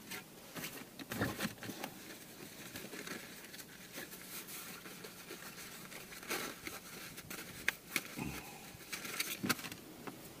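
Fabric rustles as a cloth pouch is handled.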